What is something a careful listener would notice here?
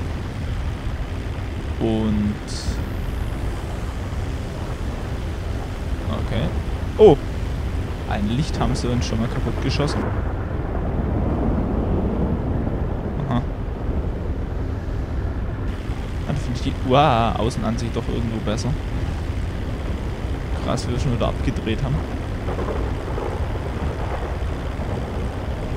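A propeller plane's engines drone steadily in flight.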